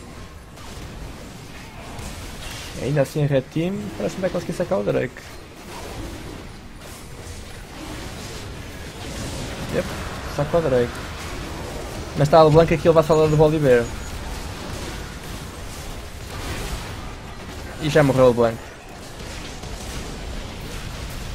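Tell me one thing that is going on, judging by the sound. Game battle effects whoosh and clash.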